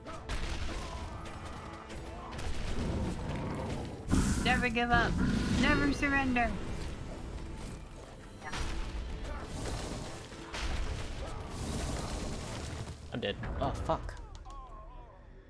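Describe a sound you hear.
Video game explosions boom and crackle in a battle.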